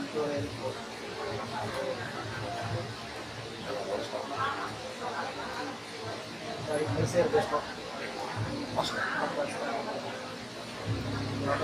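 A crowd of people murmurs and chats in the background.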